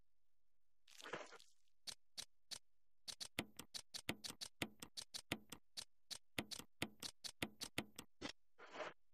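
Short menu beeps click in quick succession.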